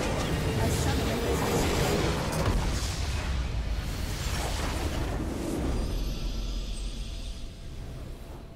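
Game spells explode and crash loudly.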